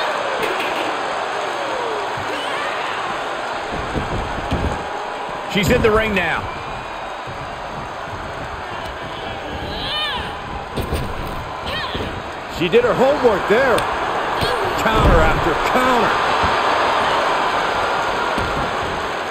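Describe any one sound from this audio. A large crowd cheers and murmurs steadily in a big arena.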